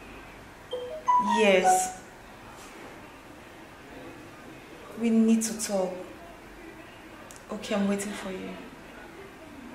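A woman speaks on a phone close by, with animation.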